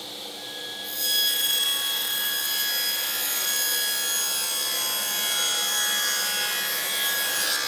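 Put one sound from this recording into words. A table saw blade cuts through wood.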